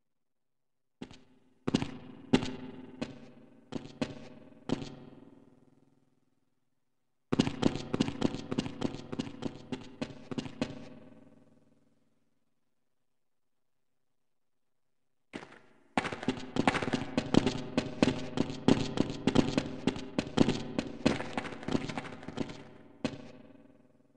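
A rifle fires single shots and rapid bursts that echo in a large hall.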